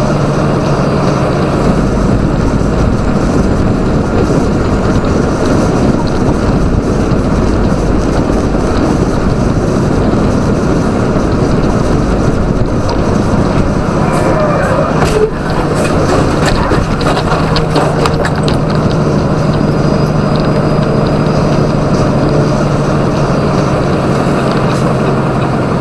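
A truck engine drones steadily as it drives.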